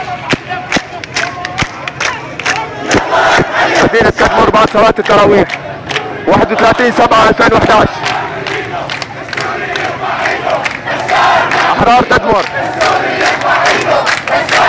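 People in a crowd clap their hands in rhythm.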